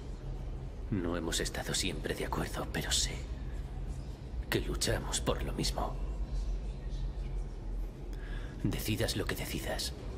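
A different young man speaks calmly and persuasively, close by.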